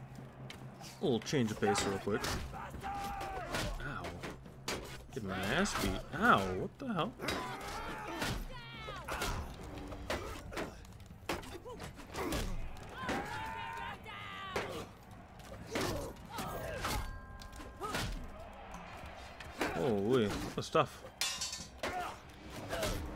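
Men shout and grunt in battle cries.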